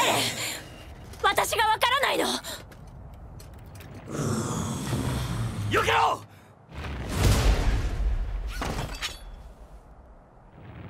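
A young woman speaks tensely.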